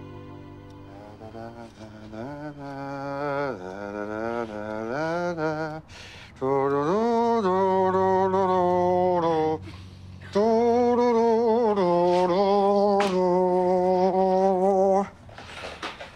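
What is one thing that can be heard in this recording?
A man sings a slow, drawn-out song nearby.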